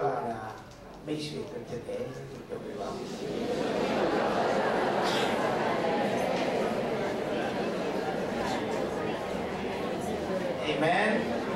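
A middle-aged man speaks through a microphone and loudspeakers in an echoing hall.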